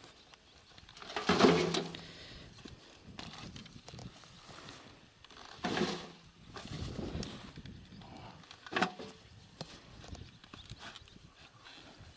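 A shovel scrapes and digs into soil.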